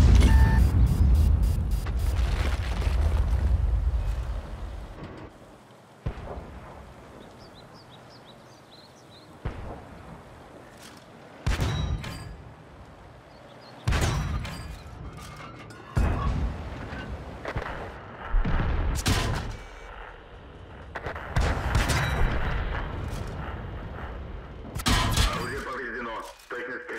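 Heavy cannon shots boom with rumbling echoes, again and again.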